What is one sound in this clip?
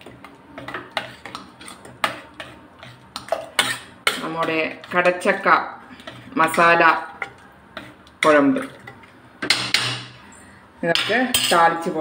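A metal ladle stirs and scrapes inside a metal pot.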